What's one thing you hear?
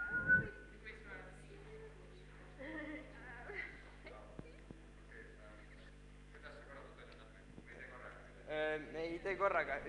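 Young girls chatter and laugh nearby.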